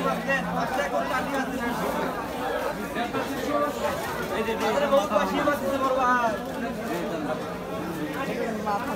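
A crowd of adults chatters close by, with overlapping voices.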